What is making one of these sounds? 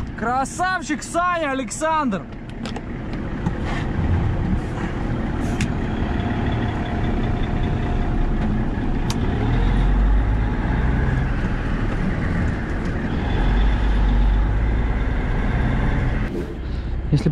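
A truck engine rumbles steadily while driving.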